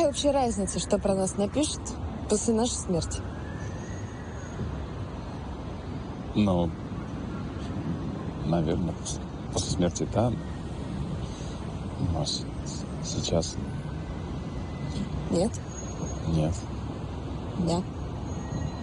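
A man speaks quietly, close by.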